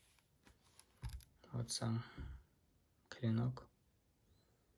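A knife blade slides against a leather sheath.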